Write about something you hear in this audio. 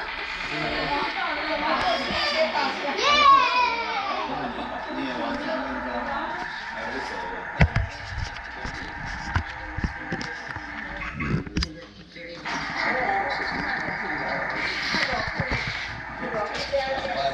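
Young children shout and squeal with excitement nearby.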